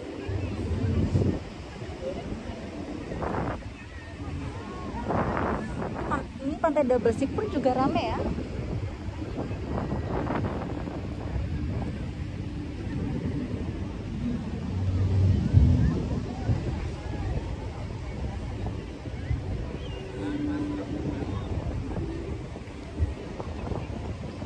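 Waves wash onto the shore nearby.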